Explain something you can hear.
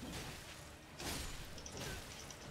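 A magic blast bursts with a whoosh.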